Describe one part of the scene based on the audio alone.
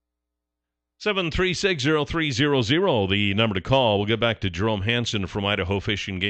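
A man speaks steadily into a close microphone.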